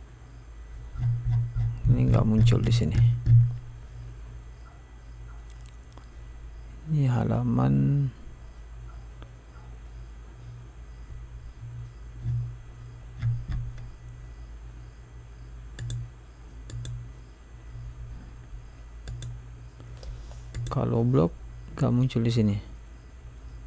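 A man speaks calmly into a close microphone, in short bursts.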